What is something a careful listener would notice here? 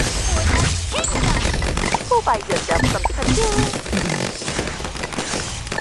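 Cartoonish game sound effects pop, zap and chime in quick succession.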